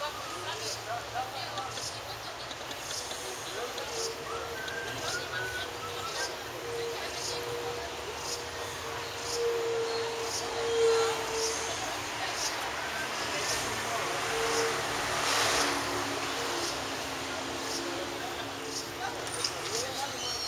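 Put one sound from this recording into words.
A busy street market murmurs with many distant voices.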